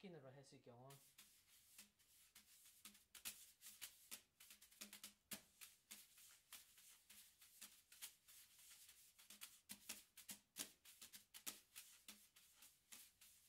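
Drumsticks tap quickly on a rubber practice pad.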